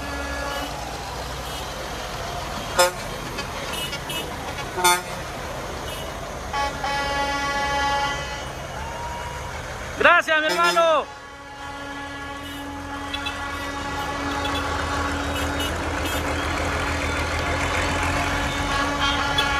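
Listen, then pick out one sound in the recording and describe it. Truck engines rumble as trucks roll slowly past.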